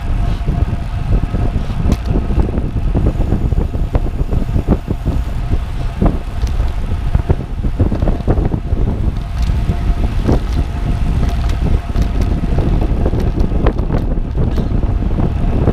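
Wind rushes loudly past the microphone of a moving bicycle.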